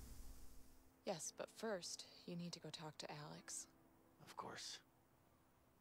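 A young woman answers calmly.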